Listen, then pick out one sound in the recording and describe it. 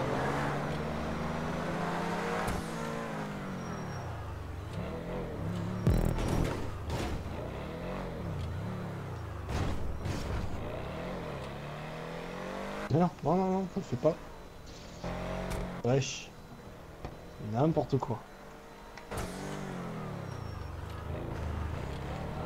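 A car engine hums and revs as the car drives along.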